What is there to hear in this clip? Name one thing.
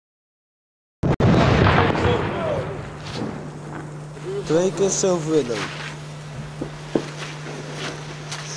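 Firework fuses hiss and sputter close by.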